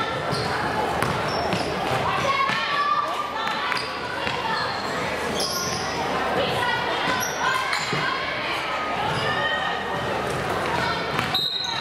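Spectators chatter nearby.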